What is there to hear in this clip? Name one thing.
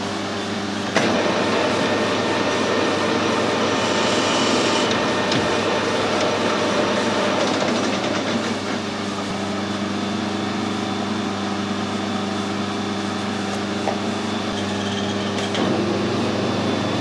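A lathe spindle whirs loudly as it spins up.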